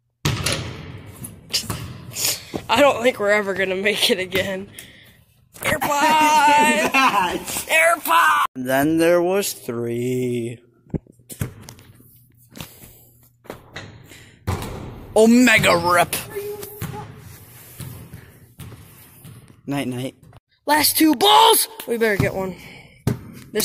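Basketballs thud and bounce on a hard floor.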